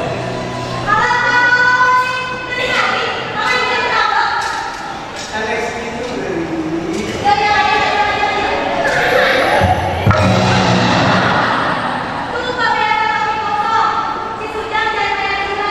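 A young woman sings loudly in an echoing hall.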